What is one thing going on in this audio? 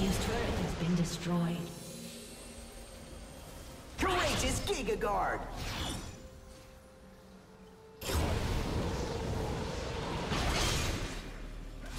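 Magic spell effects whoosh and crackle in bursts.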